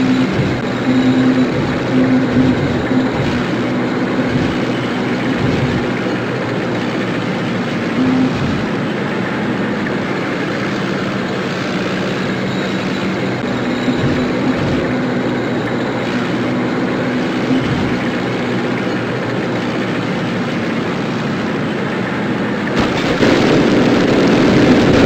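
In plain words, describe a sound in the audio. A tank engine rumbles and drones steadily.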